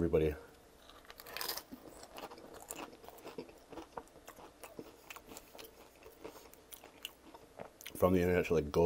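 A man chews a tortilla chip with his mouth open, close to a microphone.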